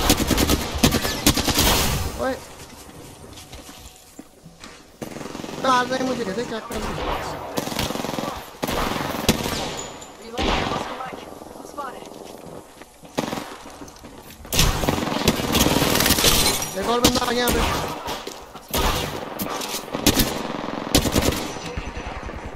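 Rapid gunfire rattles in bursts.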